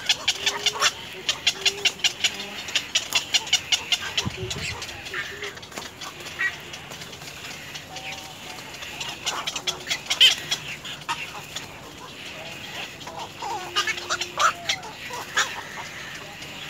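Young birds chirp and peep rapidly in a nest.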